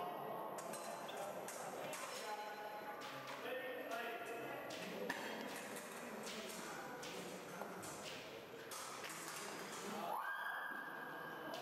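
Fencing blades clash and clink in an echoing hall.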